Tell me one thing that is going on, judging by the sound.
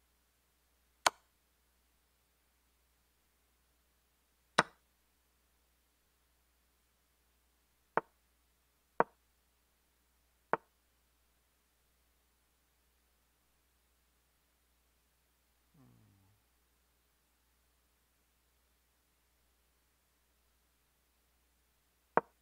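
Sharp wooden clicks of chess pieces being placed sound every few seconds.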